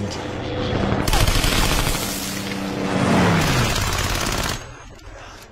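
A submachine gun fires a long burst.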